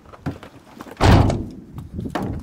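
A van door slams shut.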